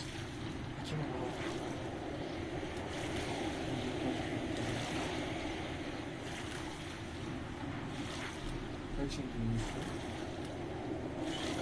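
Water splashes softly as a swimmer paddles.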